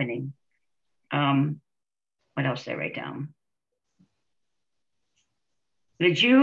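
Several women speak in short bursts over an online call.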